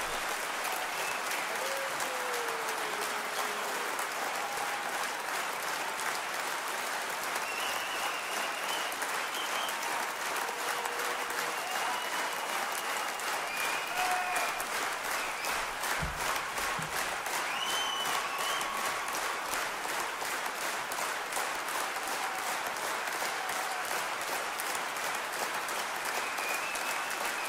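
People in a crowd cheer and whistle.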